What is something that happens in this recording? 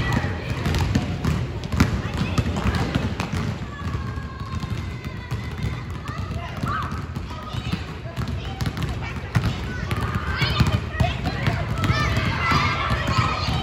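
Basketballs bounce rapidly on a wooden floor in a large echoing gym.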